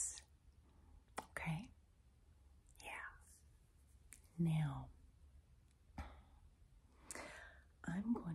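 A woman whispers softly, very close to a microphone.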